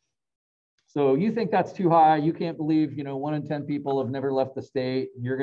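A middle-aged man speaks calmly through an online call microphone.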